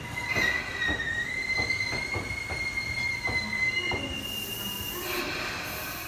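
A train's wheels squeal thinly on the rails.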